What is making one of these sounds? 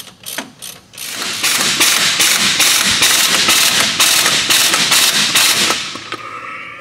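An impact wrench rattles loudly.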